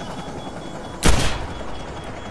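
A pistol fires a single loud shot.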